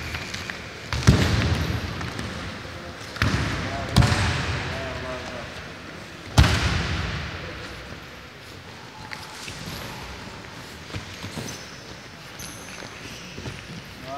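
Wrestlers' bodies thud onto a wrestling mat in a large echoing hall.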